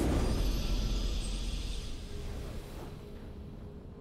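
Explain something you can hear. A triumphant game fanfare rings out and slowly fades away.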